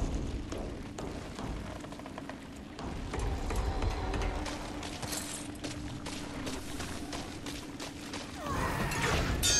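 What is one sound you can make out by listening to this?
Boots clank on metal grating and stairs.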